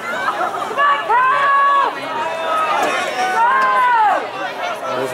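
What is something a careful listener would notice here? Spectators shout long, loud cheers of encouragement.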